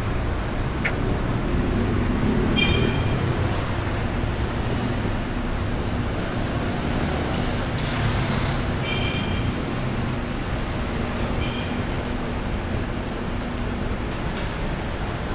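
City traffic rumbles steadily nearby, outdoors.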